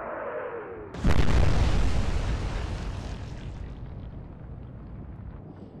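A heavy shell crashes into the sea with a roaring blast and a rushing splash.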